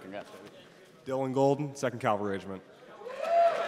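A man announces loudly through a microphone and loudspeakers.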